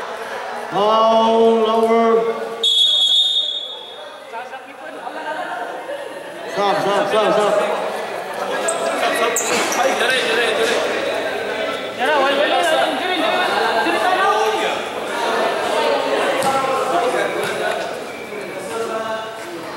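A crowd of young spectators shouts and cheers in an echoing hall.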